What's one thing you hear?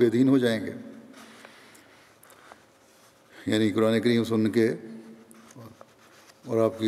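An elderly man speaks calmly and slowly into a microphone, reading out with pauses.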